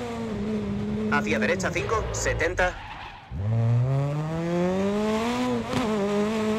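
A rally car engine slows almost to idle, then climbs back up to speed.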